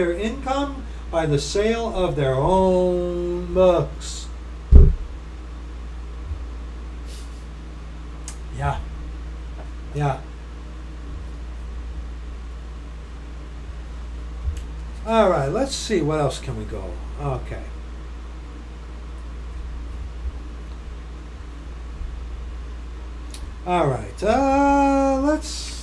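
A middle-aged man speaks close to a microphone in short bursts, with pauses between.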